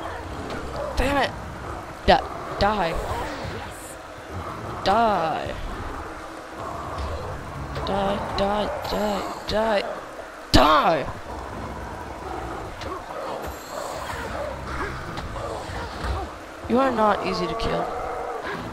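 A beast snarls and roars in short bursts.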